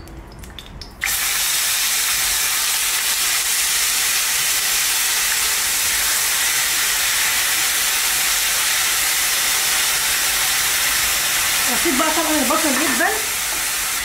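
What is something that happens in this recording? Chopped onions sizzle loudly in hot oil.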